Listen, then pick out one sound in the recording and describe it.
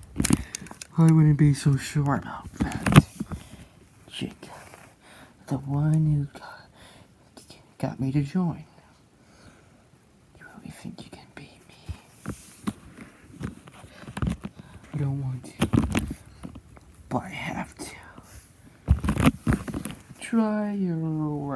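A plastic toy clicks and rattles as it is handled.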